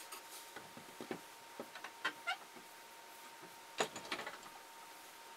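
A wooden block knocks and scrapes against a vise.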